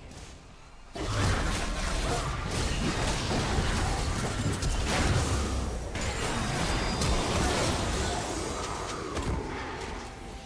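Video game spell effects crash and sizzle during a battle.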